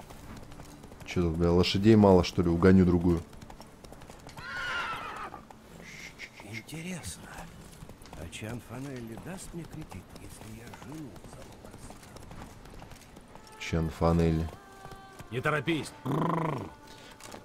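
A horse's hooves clop along a dirt track.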